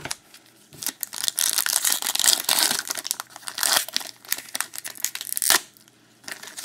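A foil wrapper crinkles and tears as a pack is ripped open.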